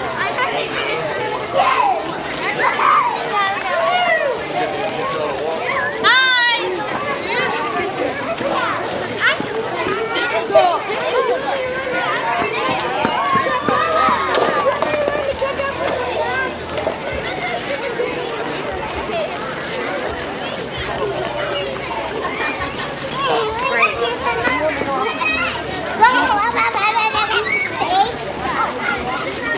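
A crowd of adults and children chatter and call out nearby, outdoors.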